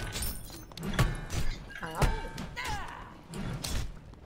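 Weapons clash and spells crackle in a fantasy battle game.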